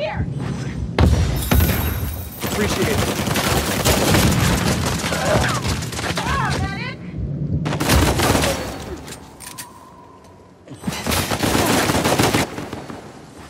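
Gunshots ring out in rapid bursts, echoing off stone walls.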